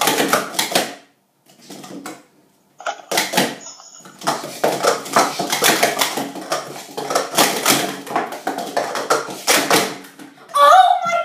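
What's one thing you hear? Plastic cups clatter rapidly as they are stacked and unstacked on a mat.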